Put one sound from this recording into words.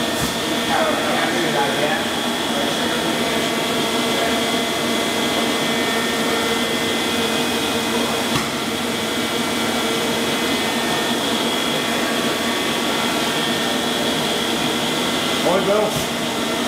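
A machine hums steadily with a high whine.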